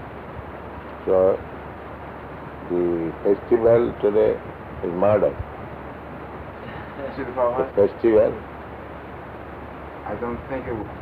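An elderly man speaks slowly in short phrases with long pauses.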